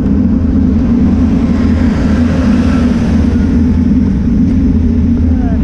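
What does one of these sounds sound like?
A truck drives past close by with a rising and fading rush.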